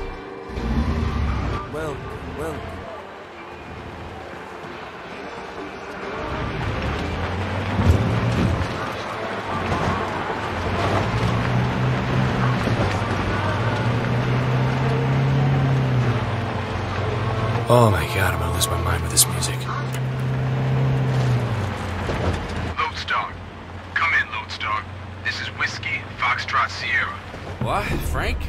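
A car engine hums steadily and revs as the car drives.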